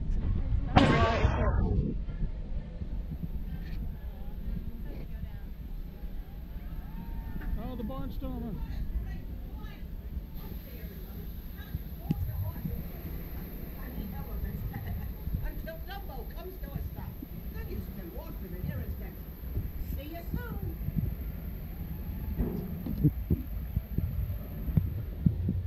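A young girl talks close by.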